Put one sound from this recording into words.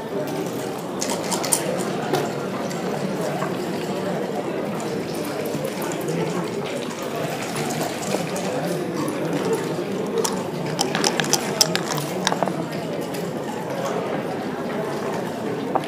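Game pieces click and slide on a wooden board.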